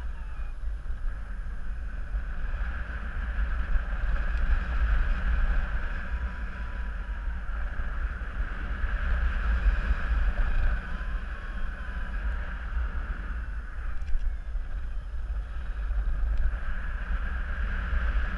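Strong wind rushes steadily past a microphone high in the open air.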